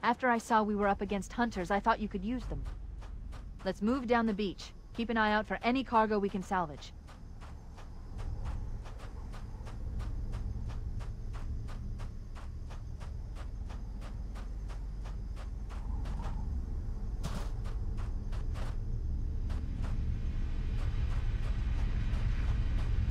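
Footsteps tread steadily over grass and gravel.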